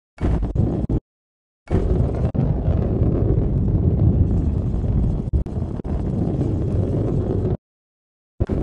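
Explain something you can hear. A ball rolls along a track with a low, steady rumble.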